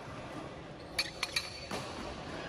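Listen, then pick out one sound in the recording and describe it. Metal weight plates on a barbell clank in a large echoing hall.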